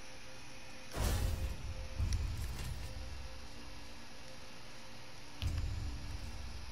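A short soft whoosh sounds as a menu opens.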